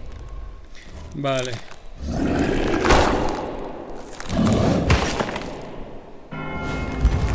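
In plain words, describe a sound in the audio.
A monstrous creature groans and roars as it rises.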